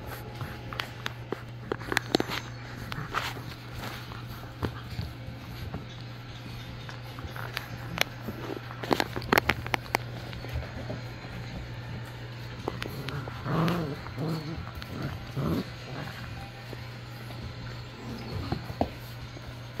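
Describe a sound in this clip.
Puppies scuffle and play close by.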